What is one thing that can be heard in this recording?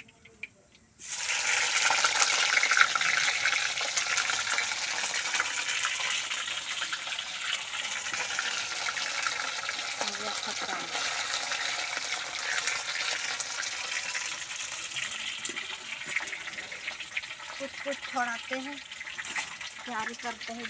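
Oil sizzles loudly as food fries in a pan.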